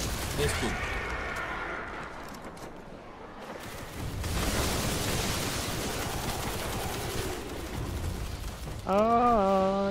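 A gun is reloaded with sharp metallic clicks.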